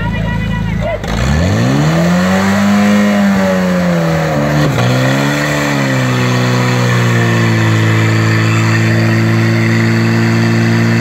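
A portable pump engine revs up sharply and then roars steadily.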